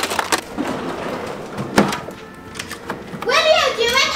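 Plastic containers clatter as a drawer is rummaged through.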